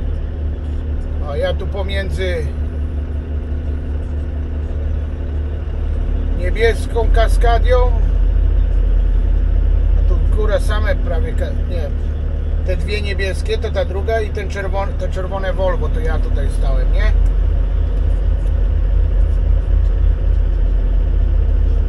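A truck's diesel engine rumbles low and steady as the truck rolls slowly.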